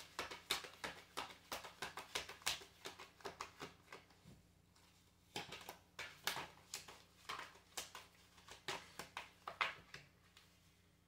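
Playing cards riffle and slap together as they are shuffled close by.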